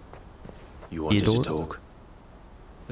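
A man asks a short question.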